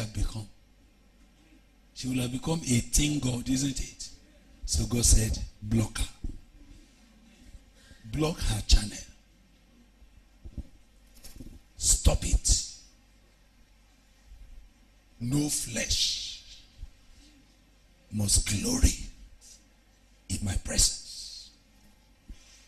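A man speaks animatedly into a microphone, heard over loudspeakers, in bursts with pauses.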